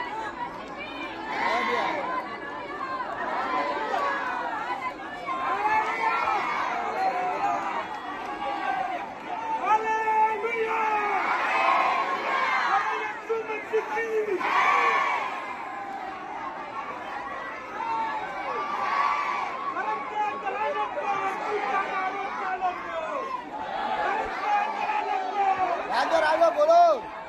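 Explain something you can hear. A large crowd of men and women shouts and clamours all around, up close, outdoors.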